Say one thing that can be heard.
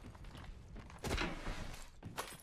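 A gun fires a short burst of sharp shots.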